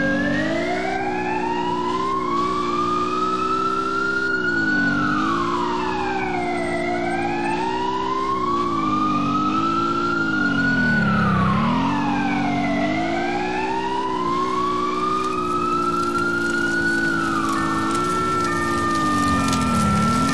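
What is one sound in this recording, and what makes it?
A heavy truck engine drones and revs up and down.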